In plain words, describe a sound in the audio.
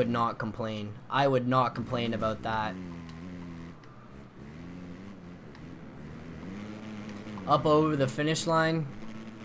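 A motorbike engine drones and revs up and down.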